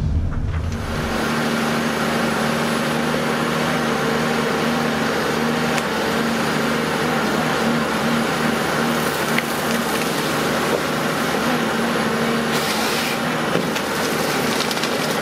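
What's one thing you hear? A forestry machine's engine hums steadily outdoors.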